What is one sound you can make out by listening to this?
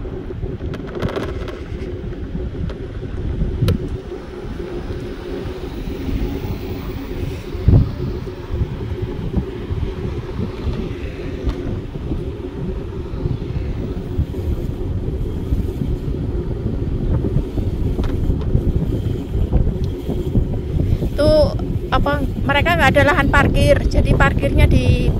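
An electric scooter motor hums steadily.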